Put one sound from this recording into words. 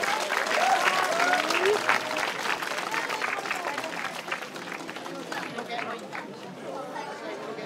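A large crowd of men and women chatters and shouts outdoors.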